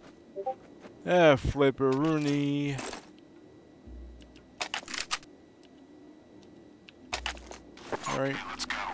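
A man talks with animation into a close microphone.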